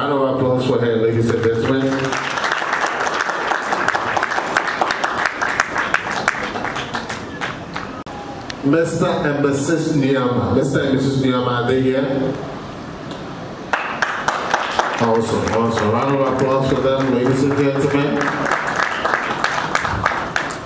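A man speaks loudly and with animation through a microphone and loudspeakers in a large room.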